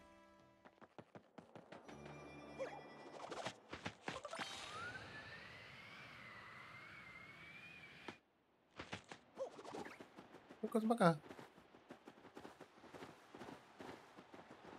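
Bouncy video game sound effects play as a cartoon character jumps.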